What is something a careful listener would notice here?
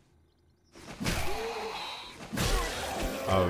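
A spear stabs into flesh with a wet thud.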